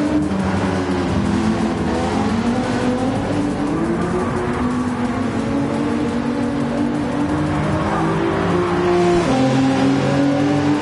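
Racing car engines roar steadily, shifting pitch as they speed past.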